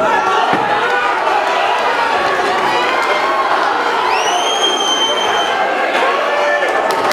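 Boxing gloves thud against a body.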